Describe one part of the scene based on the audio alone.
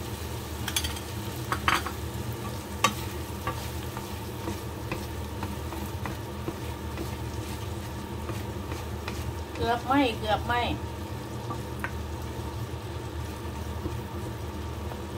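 A wooden spatula scrapes and knocks against a frying pan.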